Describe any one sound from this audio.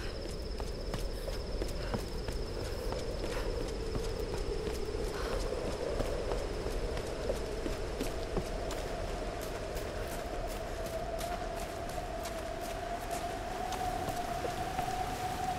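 Footsteps tread on stone and dirt.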